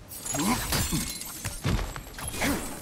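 A heavy body lands hard with a thud.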